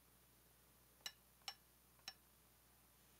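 A hammer taps on a nail a few times.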